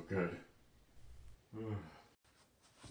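An elderly man speaks briefly nearby.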